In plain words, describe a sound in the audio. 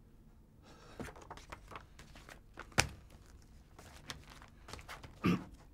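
Small objects knock and clatter on a desk.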